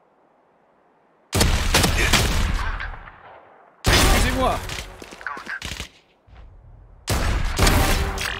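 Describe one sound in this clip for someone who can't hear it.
Gunshots fire in quick single bursts.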